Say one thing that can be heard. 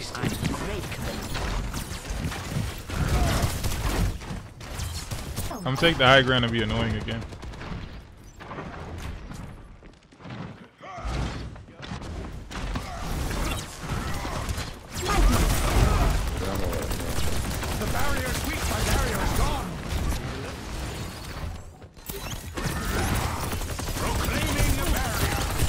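Game weapons fire with rapid electronic bursts and thuds.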